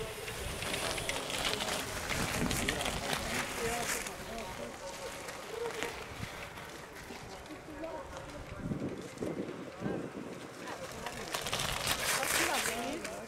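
Bicycle tyres whir and crunch past on a wet road.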